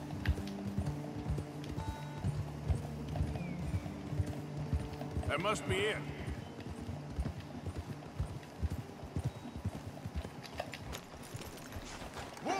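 Horses' hooves thud at a gallop on soft ground.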